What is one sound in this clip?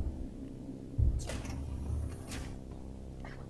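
A heavy door slides open with a thud and a hiss.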